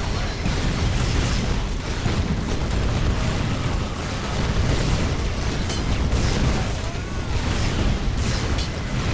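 Heavy tank engines rumble.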